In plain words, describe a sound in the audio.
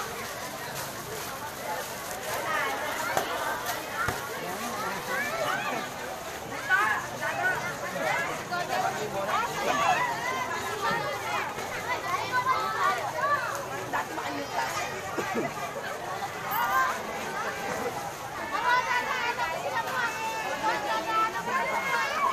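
A large outdoor crowd chatters and calls out all around.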